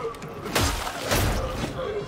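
A monster growls close by.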